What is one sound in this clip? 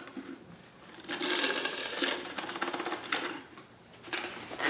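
A man slurps a drink loudly through a straw.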